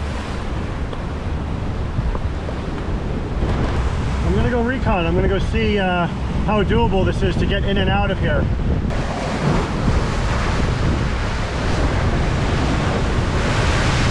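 Wind blusters loudly across the microphone.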